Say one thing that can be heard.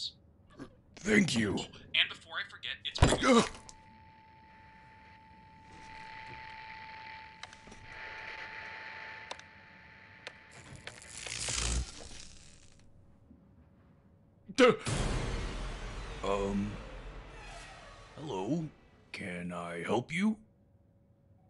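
A man exclaims with animation.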